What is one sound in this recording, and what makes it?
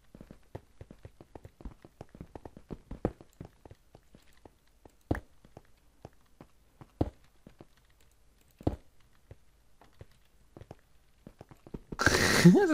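A pickaxe chips and cracks at stone blocks.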